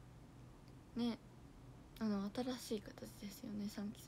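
A young woman speaks softly and brightly into a microphone, close by.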